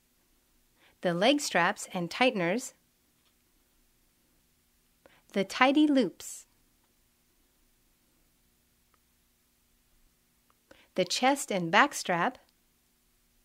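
A young woman speaks calmly and clearly, close to a microphone, in short phrases.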